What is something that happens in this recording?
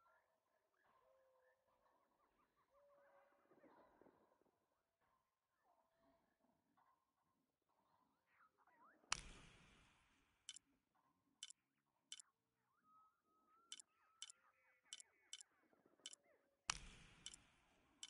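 Birds call and chirp.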